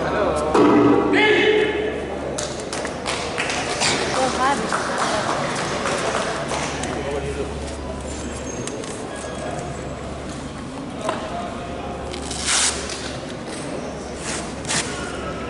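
Spectators chatter in a large echoing hall.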